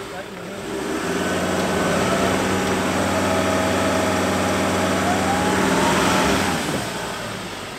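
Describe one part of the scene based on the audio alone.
A truck engine revs hard and strains, then eases off.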